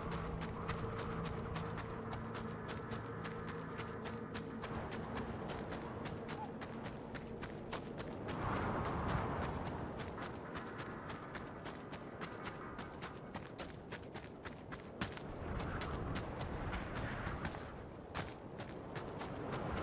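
Footsteps crunch quickly over gravel and rock.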